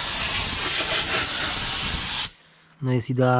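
Compressed air hisses loudly from a blow gun.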